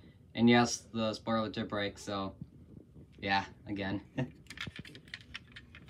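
A small plastic toy car clicks and rattles as it is handled.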